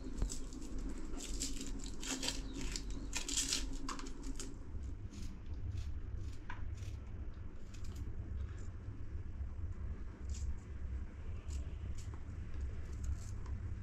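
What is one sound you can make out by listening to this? Pieces of onion drop into a metal bowl with soft clinks.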